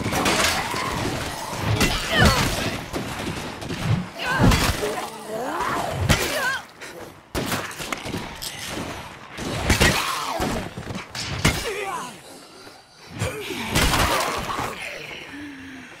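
A bat strikes with heavy, thudding blows.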